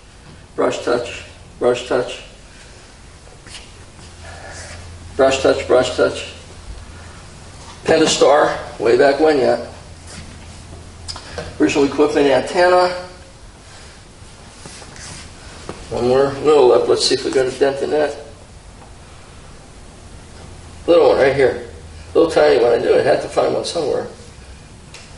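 A middle-aged man talks calmly into a nearby microphone, in short bursts with pauses.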